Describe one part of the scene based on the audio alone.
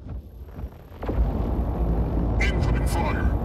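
A game's electric weapon crackles and buzzes loudly.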